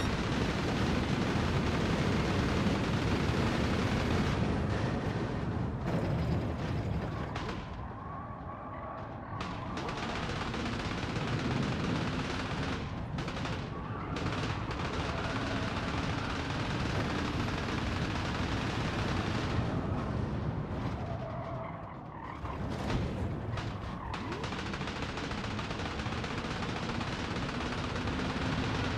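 A racing car engine roars at high speed, dropping and rising in pitch as it brakes and accelerates.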